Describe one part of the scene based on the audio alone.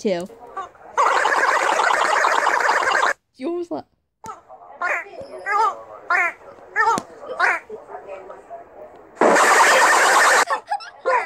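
Young girls laugh loudly close by.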